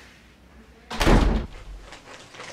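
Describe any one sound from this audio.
A plastic snack bag crinkles loudly.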